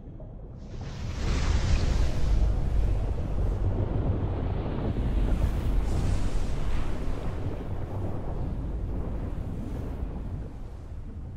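Deep water rumbles and churns.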